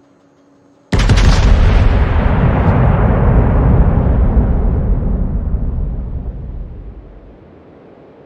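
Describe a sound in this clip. Heavy naval guns fire a loud booming salvo that rumbles and slowly fades.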